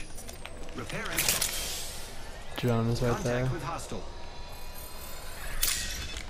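A medical syringe clicks and hisses as it is used.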